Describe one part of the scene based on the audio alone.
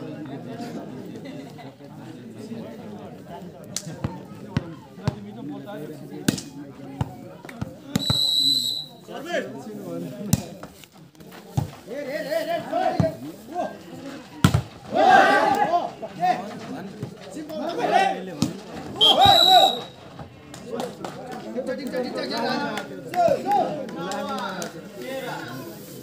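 Young men shout and call out outdoors during a game.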